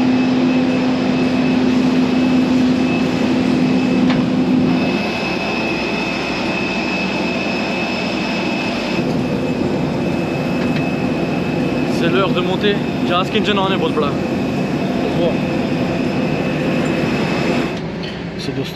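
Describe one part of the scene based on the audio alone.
Jet engines whine loudly outdoors.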